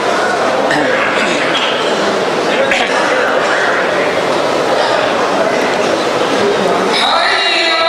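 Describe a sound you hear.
An elderly man speaks calmly through a microphone and loudspeakers in a large echoing hall.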